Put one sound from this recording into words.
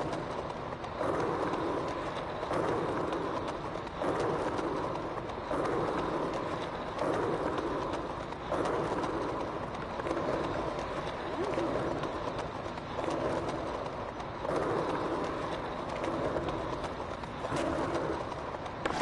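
A skateboarder's foot pushes off the ground again and again in a steady rhythm.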